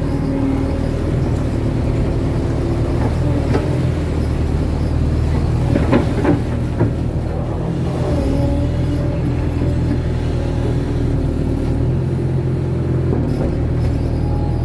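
An excavator bucket scrapes and slaps through wet mud.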